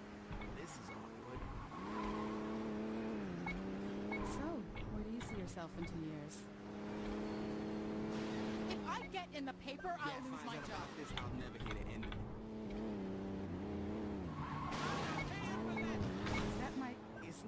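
Car tyres screech on pavement.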